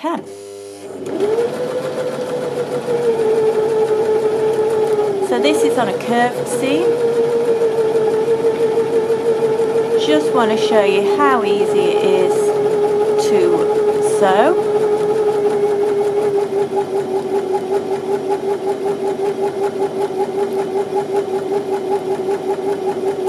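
A sewing machine hums and stitches steadily.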